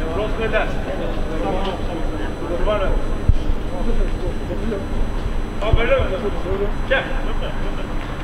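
Men shout to one another from a distance across a large, open, empty stadium.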